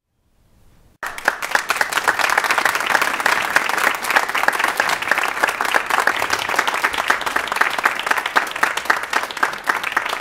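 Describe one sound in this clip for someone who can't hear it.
An audience claps and applauds loudly in a large hall.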